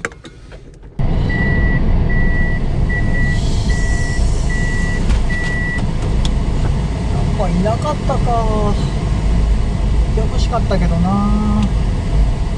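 A van engine idles with a low steady rumble.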